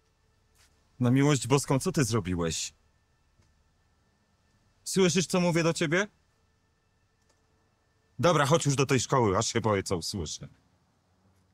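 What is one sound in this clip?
A middle-aged man speaks calmly close by, with pauses.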